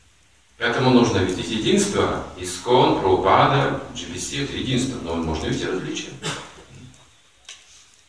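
An elderly man speaks calmly and with expression, close by.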